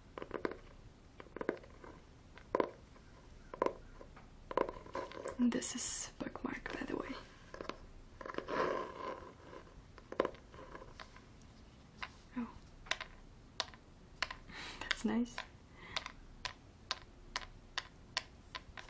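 A young woman whispers softly close to a microphone.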